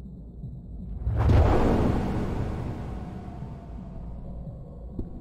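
Paper catches fire with a sudden whoosh that slowly dies down.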